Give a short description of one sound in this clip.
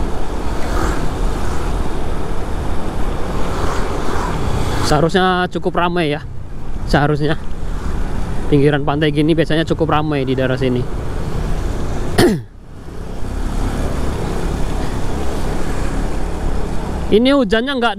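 Motorbike engines hum steadily along a road.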